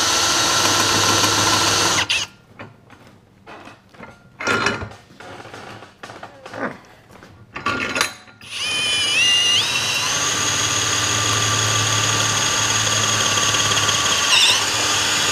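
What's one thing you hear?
A cordless drill whirs steadily at high speed, stops, then spins up again.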